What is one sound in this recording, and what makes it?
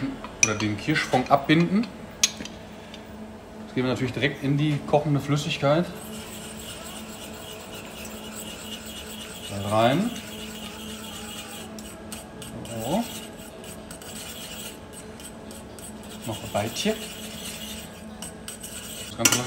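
A liquid simmers and bubbles gently in a saucepan.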